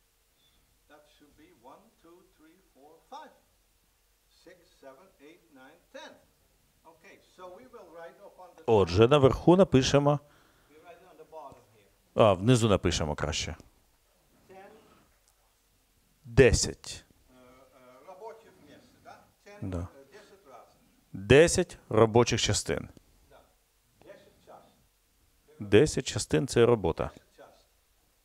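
An elderly man speaks steadily to a small group, with some passages much louder and closer than others.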